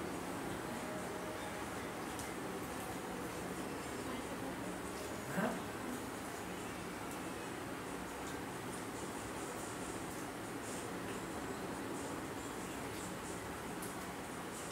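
Cutlery and hands clink softly on plates.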